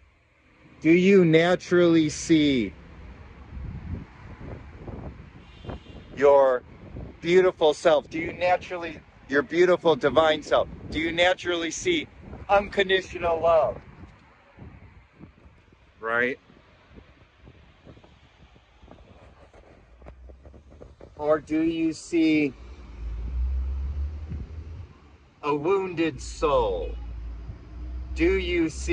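A middle-aged man talks casually and close to the microphone.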